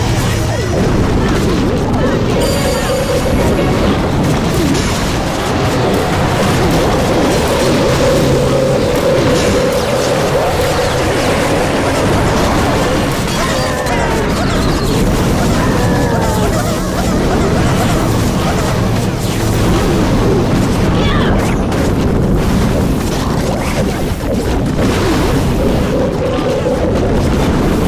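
Battle sound effects clash, crackle and explode without pause.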